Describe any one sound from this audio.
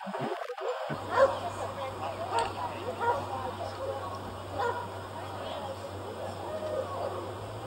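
Adults talk in the open air.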